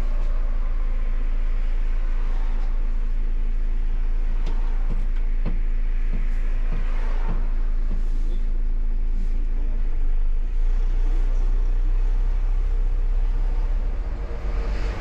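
A bus engine hums low and steady from inside the cab.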